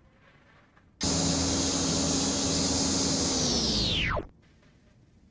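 A propeller engine hums steadily, then cuts off.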